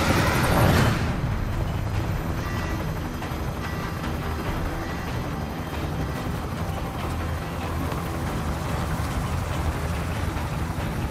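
A helicopter engine drones steadily from inside the cabin.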